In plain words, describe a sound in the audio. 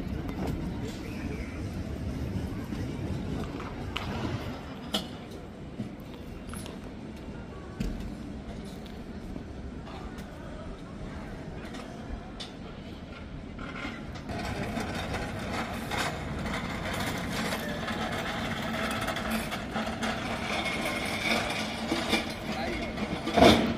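A pallet truck rolls over paving stones, its wheels rumbling.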